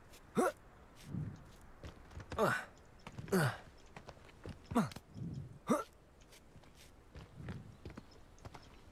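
Hands and feet scrabble against rough stone during a climb.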